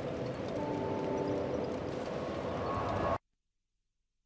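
A loud rushing whoosh of fire roars and then cuts off abruptly.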